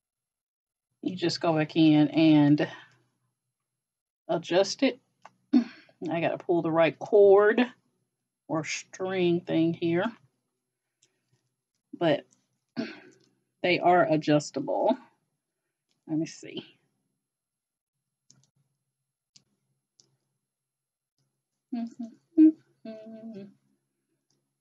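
A middle-aged woman talks calmly and close to a microphone.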